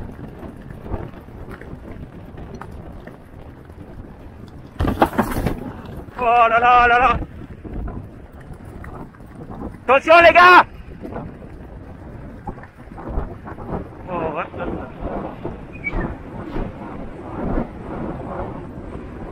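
Horses' hooves pound rhythmically on turf at a gallop.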